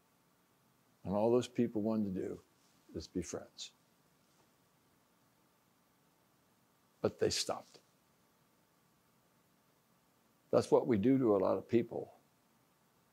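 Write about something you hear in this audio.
An elderly man speaks calmly, pausing between phrases.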